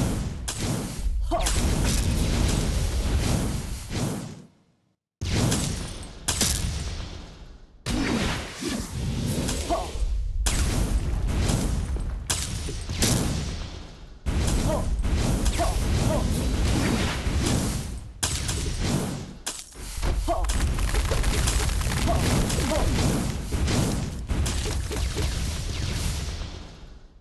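Game explosions and spell blasts burst in quick succession.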